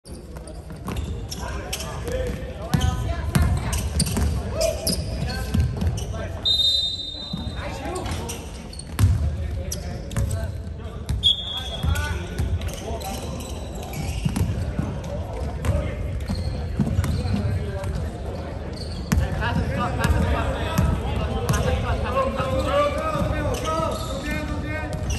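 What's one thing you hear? Players shout and call out across a large echoing hall.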